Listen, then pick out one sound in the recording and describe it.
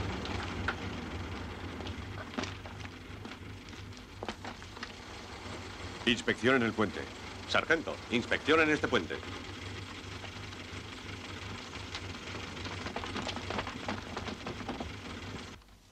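Truck engines idle with a low rumble.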